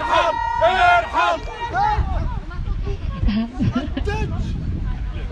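A woman shouts through a megaphone, her voice loud and distorted.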